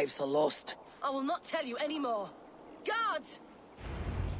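A young woman calls out loudly in alarm.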